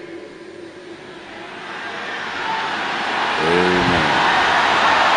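A large crowd laughs and cheers.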